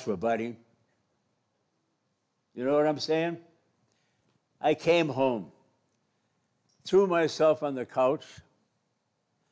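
An elderly man speaks slowly into a microphone, in short phrases with pauses.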